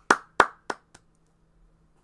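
A young man claps his hands close by.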